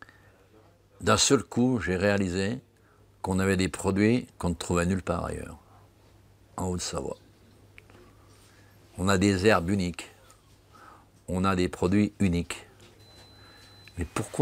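A middle-aged man speaks calmly and thoughtfully into a nearby microphone, with pauses between phrases.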